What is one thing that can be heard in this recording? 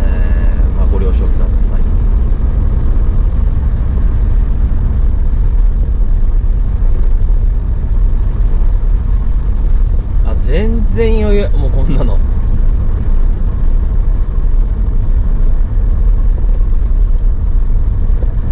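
Tyres crunch and rumble over packed snow.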